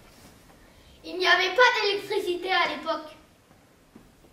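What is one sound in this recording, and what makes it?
A child speaks loudly and with animation nearby.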